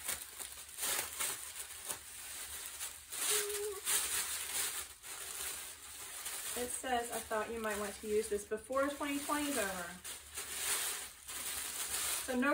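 Plastic wrapping crinkles and rustles as it is unwrapped.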